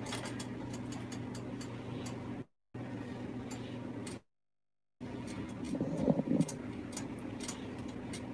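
Hot oil crackles faintly in a frying pan.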